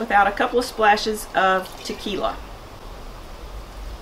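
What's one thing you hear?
Liquid pours from a bottle into a bowl.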